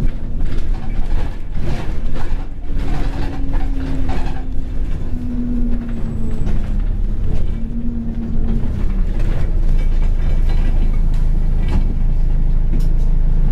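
A vehicle's engine rumbles low and steady, heard from inside the vehicle.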